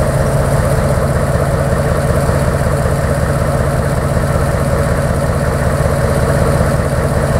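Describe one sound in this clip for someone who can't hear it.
A heavy diesel engine rumbles steadily close by.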